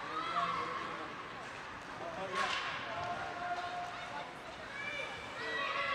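Ice skates scrape and hiss across ice in a large echoing arena.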